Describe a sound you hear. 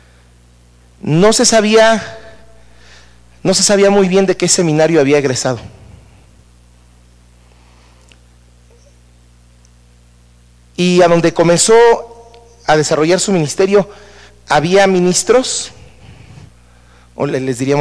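A man speaks through a microphone in bursts, with long pauses, in a room with a slight echo.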